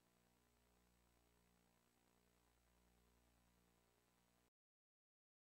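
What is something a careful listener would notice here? Electronic synthesizer music plays very quietly.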